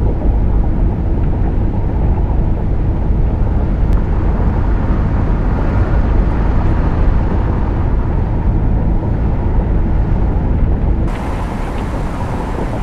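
A bus engine rumbles steadily from inside the cab.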